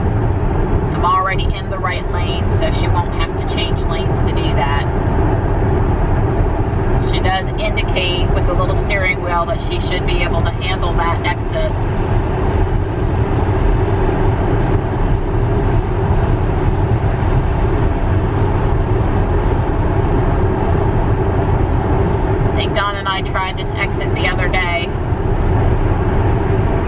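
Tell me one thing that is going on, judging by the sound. Tyres hum steadily on a highway, heard from inside a moving car.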